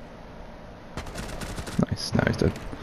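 Rapid gunshots fire in a short burst.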